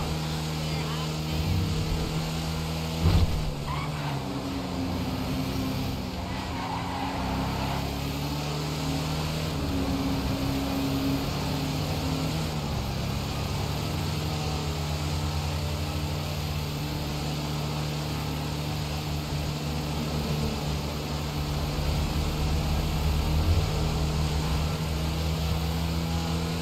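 A heavy truck engine drones steadily as the truck drives along a road.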